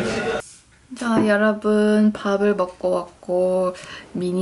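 A young woman speaks calmly and clearly close to a microphone in a quiet room.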